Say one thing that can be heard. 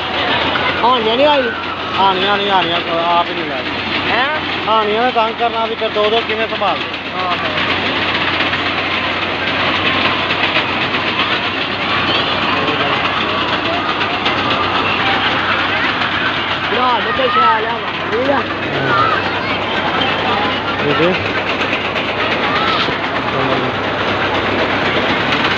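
A ride rattles and whirs steadily.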